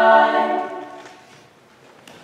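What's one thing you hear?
A choir holds a final sung chord that fades into a reverberant hall.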